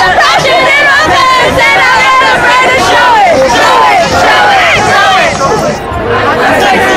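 A crowd of young people cheers and screams loudly outdoors.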